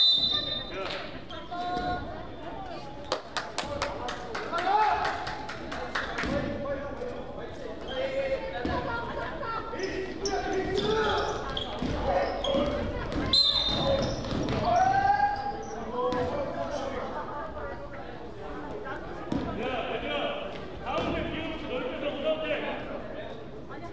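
Players shout and call out to each other.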